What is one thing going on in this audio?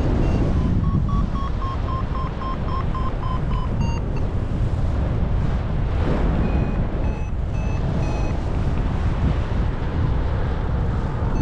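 Strong wind rushes and buffets loudly past the microphone outdoors.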